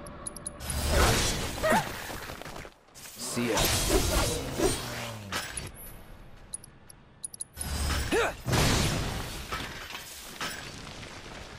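Sword slashes and magic impacts crash in a fast video game battle.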